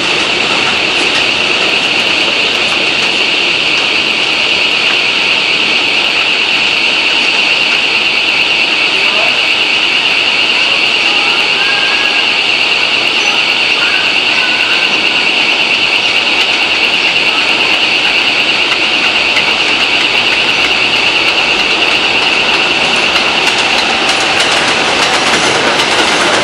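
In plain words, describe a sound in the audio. A subway train rolls in along an elevated steel track.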